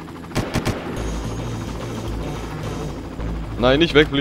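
A helicopter's rotor thumps and whirs overhead.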